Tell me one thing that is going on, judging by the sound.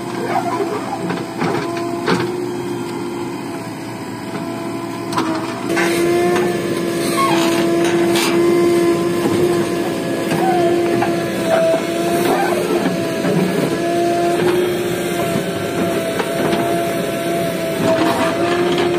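A backhoe engine drones steadily close by.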